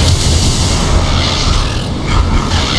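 An electric crackle of lightning snaps and buzzes.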